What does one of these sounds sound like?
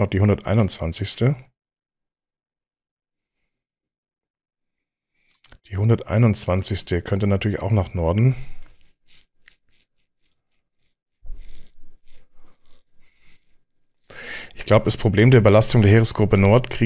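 A man talks calmly into a close microphone, in bursts with pauses.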